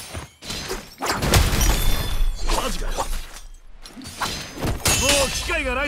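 Heavy magical blasts boom and crackle.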